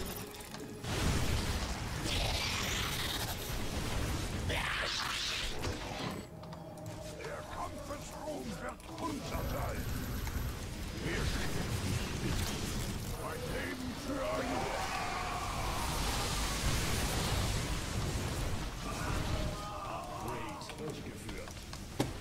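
Laser blasts and explosions crackle in a game battle.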